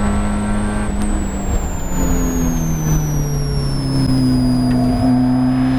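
A four-cylinder Spec Miata race car downshifts under braking, its revs dropping.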